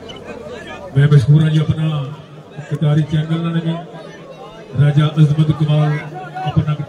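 A man calls out loudly in a drawn-out, chanting voice.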